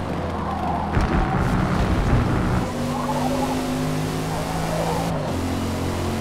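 Tyres hiss on the track surface.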